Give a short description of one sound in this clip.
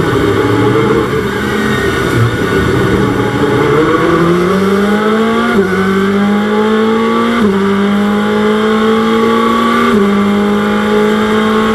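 A racing car engine revs back up through a series of gear changes.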